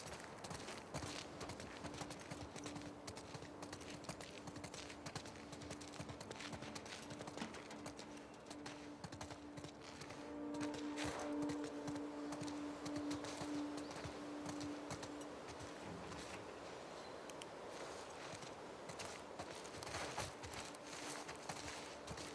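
Footsteps scuff steadily on a hard floor.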